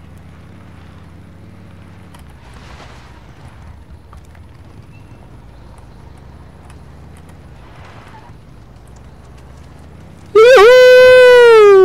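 A motorbike engine hums steadily at low speed.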